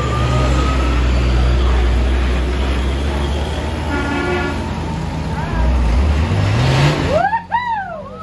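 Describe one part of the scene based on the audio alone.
A heavy truck engine rumbles and strains.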